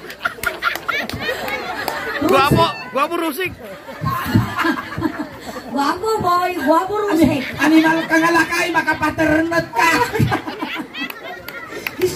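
A young woman sings into a microphone, heard loudly through loudspeakers.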